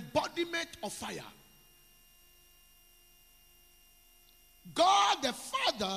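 A man preaches with animation into a microphone, pausing between phrases.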